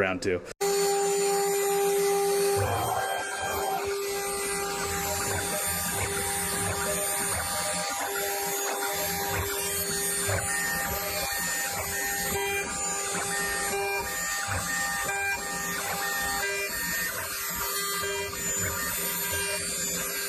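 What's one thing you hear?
A milling machine whines steadily as its cutter spins.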